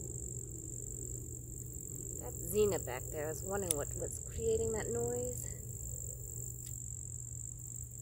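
Garden shears snip plant stems.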